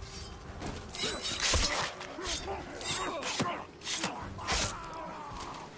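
Blades clash and strike in quick, sharp blows.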